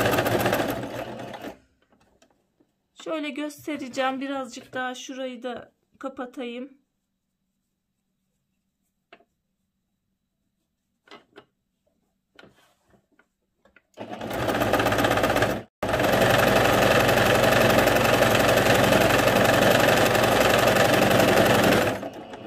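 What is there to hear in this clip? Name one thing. A sewing machine whirs rapidly as it stitches.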